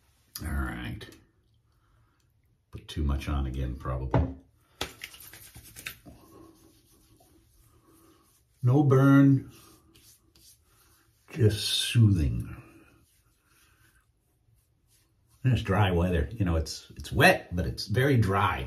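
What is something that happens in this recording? A middle-aged man talks with animation, close to the microphone.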